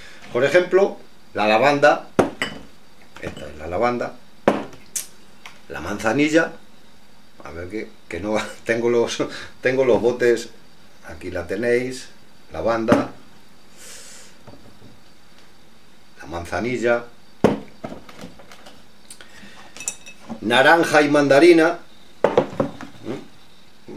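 A middle-aged man talks calmly and close by, in bursts with pauses.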